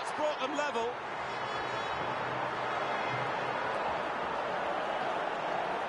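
A stadium crowd cheers loudly after a goal.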